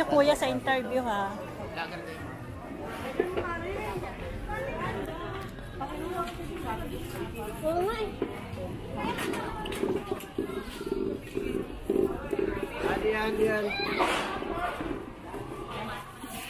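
A crowd of men and women chatter all around outdoors.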